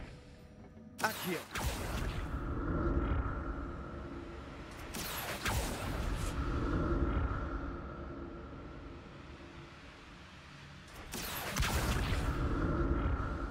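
A magic spell whooshes and shimmers.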